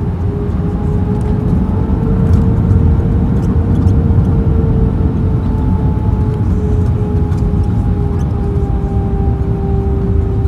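Jet engines roar louder as an airliner brakes on the runway.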